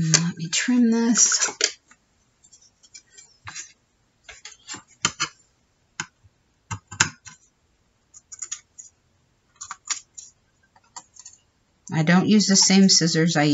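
Paper rustles and crinkles as hands smooth and move it.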